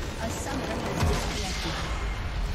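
A large structure explodes with a deep boom.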